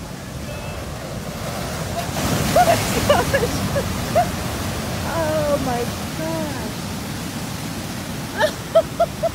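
Waves surge and crash in a roaring rush of foaming water.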